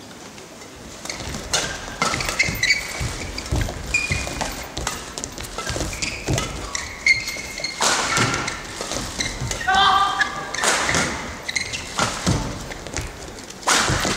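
Rackets strike a shuttlecock with quick pops in a large echoing hall.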